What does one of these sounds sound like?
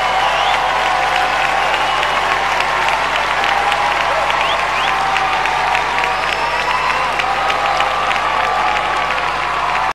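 A large crowd cheers and screams loudly throughout.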